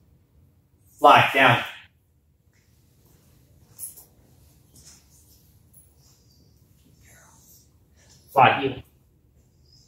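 A man speaks in short, firm commands to a dog nearby.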